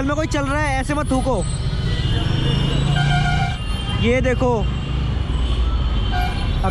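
Cars and a bus drive past close by.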